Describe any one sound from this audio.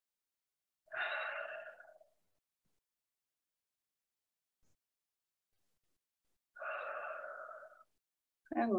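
A woman breathes in and out slowly and deeply.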